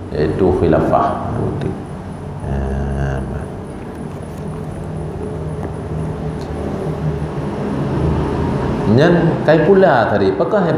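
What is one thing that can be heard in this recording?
A man speaks steadily into a microphone, heard through a loudspeaker in an echoing room.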